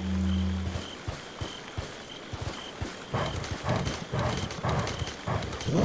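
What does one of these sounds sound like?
Footsteps walk steadily on soft ground.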